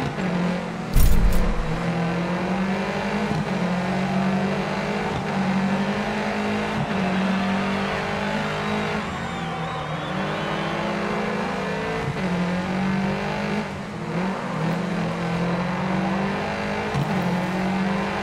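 Tyres skid on tarmac as a rally car drifts through corners.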